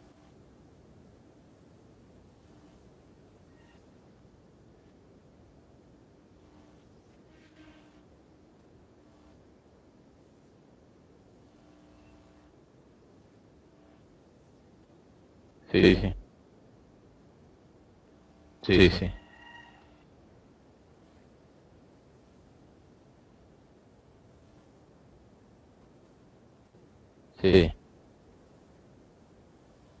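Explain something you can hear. A young man speaks quietly over an online call.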